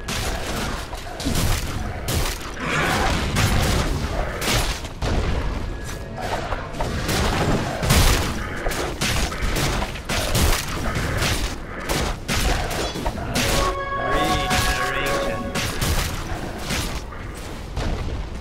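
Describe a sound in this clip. Game combat sounds clash with rapid hits and spell blasts.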